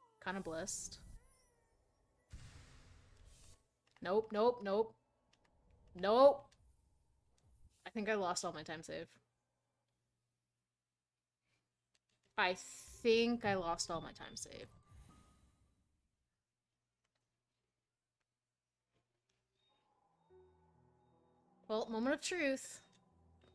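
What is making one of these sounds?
A young woman talks with animation into a close microphone, in short bursts.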